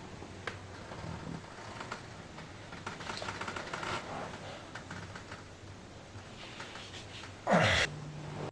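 A man groans and mutters softly close by.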